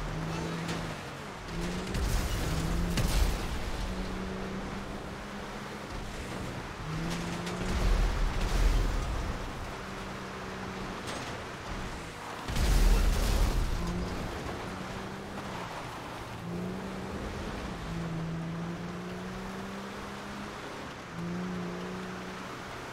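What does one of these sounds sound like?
A heavy truck engine drones and revs steadily.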